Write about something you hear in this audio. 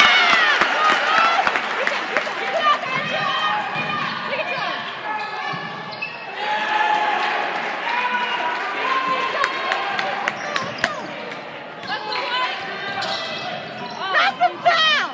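A crowd of spectators chatters and cheers in an echoing gym.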